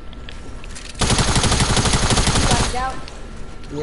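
Gunshots crack in a rapid burst.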